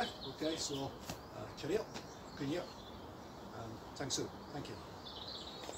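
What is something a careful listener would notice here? A man speaks calmly, close by, outdoors.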